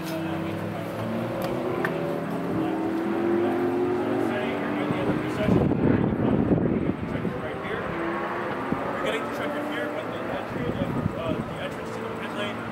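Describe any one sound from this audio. Men chat quietly at a distance outdoors.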